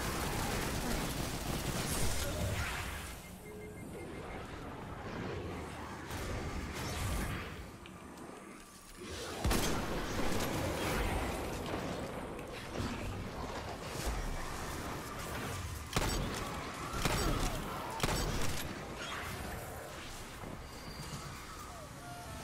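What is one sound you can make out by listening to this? Gunshots and blasts from a video game ring out in quick bursts.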